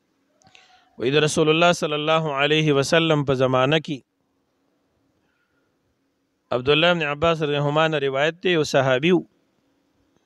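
A man chants a recitation in a melodic voice, close to a microphone.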